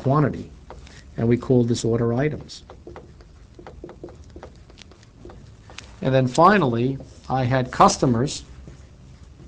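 A man speaks clearly in short phrases, close by.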